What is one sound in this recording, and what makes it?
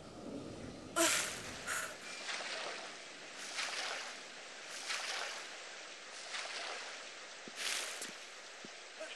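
A swimmer breaks the surface and splashes through water.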